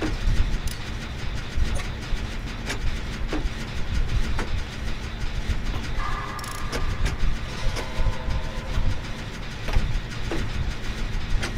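Metal parts click and clink now and then.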